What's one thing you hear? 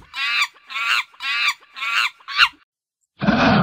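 A monkey chatters in short, shrill calls.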